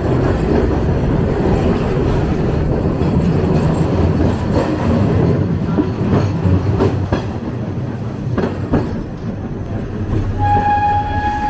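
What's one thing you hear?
A streetcar rumbles and rattles along the tracks.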